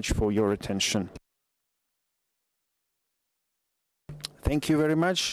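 A man speaks calmly into a microphone, pausing briefly.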